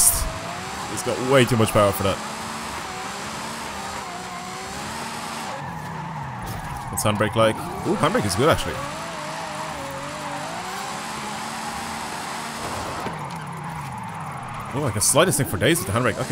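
A car engine roars and whines through high revs.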